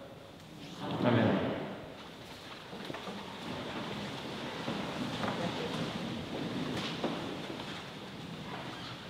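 A man reads aloud in a large echoing hall.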